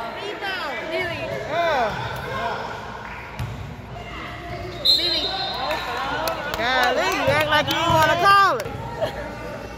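A crowd of young people cheers and shouts in an echoing hall.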